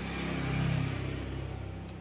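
Fingers tap and handle a mobile phone.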